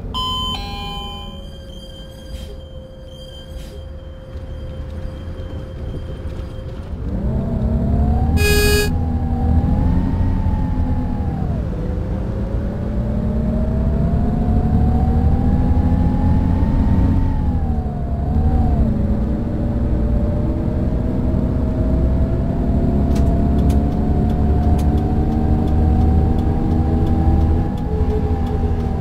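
A bus engine hums low and then revs louder, its pitch rising and falling as the bus drives.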